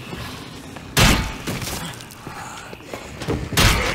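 Heavy blows strike a body with loud, wet thuds.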